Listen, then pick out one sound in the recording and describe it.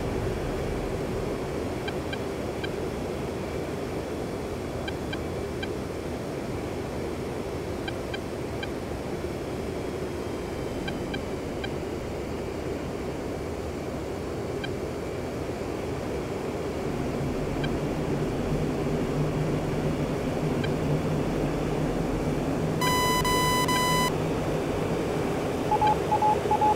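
A jet engine roars steadily, growing deeper and louder partway through.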